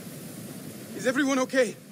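A young man speaks briefly in a raised voice.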